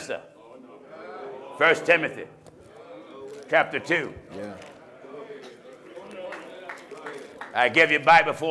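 A middle-aged man preaches with animation into a microphone, his voice filling an echoing hall.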